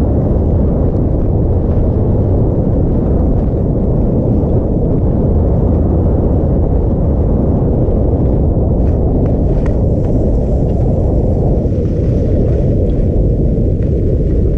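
Skis scrape and hiss over snow.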